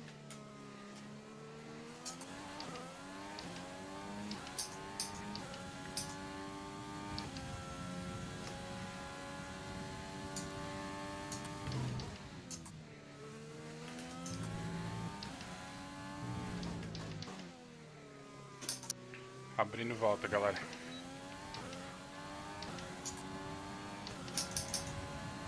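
A racing car engine screams, rising in pitch through the gears and dropping as it slows for corners.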